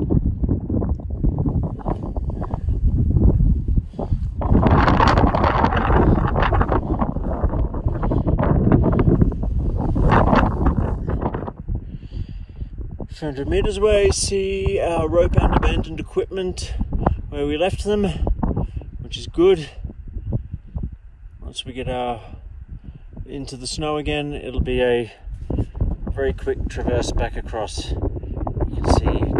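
Wind gusts loudly across an open mountainside.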